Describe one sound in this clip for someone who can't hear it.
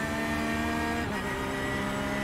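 A racing car engine's pitch drops sharply as the gear shifts up.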